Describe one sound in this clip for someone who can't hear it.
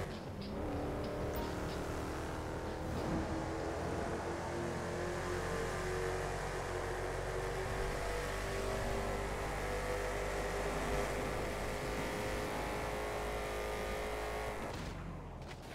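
A hot rod engine roars at speed.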